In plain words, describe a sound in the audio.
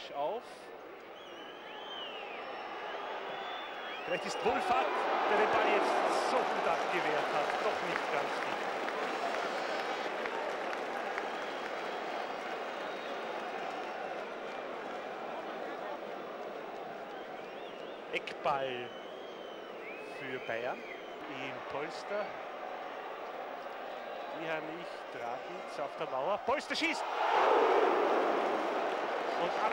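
A large stadium crowd roars and cheers, swelling loudly at times.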